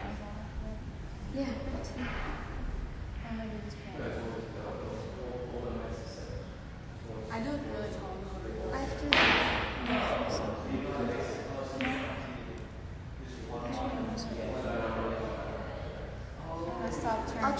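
Young women talk and chatter casually nearby, heard through a phone microphone.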